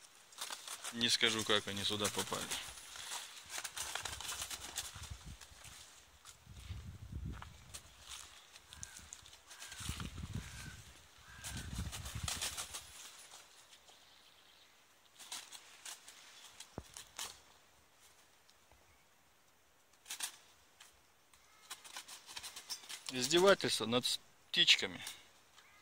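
Crows caw loudly nearby.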